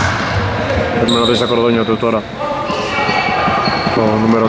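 Men shout to each other across an echoing gym.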